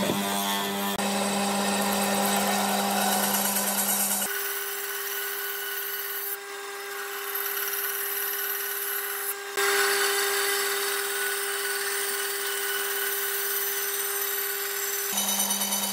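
A band saw whines as it cuts through wood.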